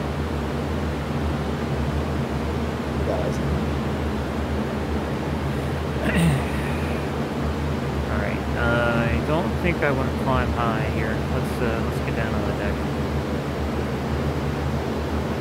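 A propeller plane's engine drones steadily and loudly.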